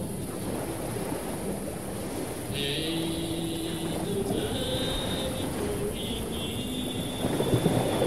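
An accordion plays chords.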